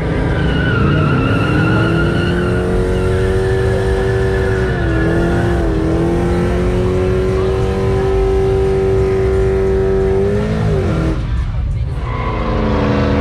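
A truck engine roars loudly at high, steady revs, then drops and rises again.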